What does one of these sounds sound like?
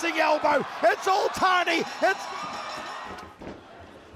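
A crowd cheers in a large hall.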